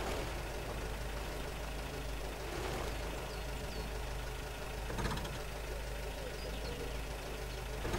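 A vehicle engine rumbles steadily up close.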